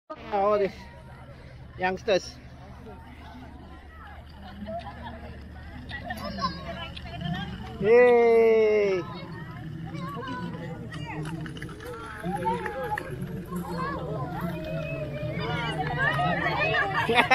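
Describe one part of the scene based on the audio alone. Children shout and chatter excitedly nearby, outdoors.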